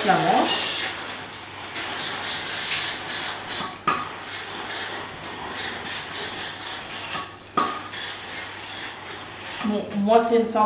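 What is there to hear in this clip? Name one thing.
A steam iron hisses as it glides over cloth.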